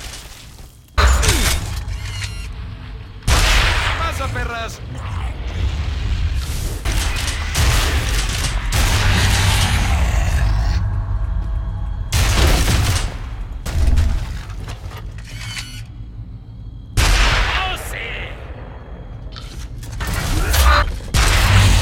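Guns fire in loud, heavy bursts.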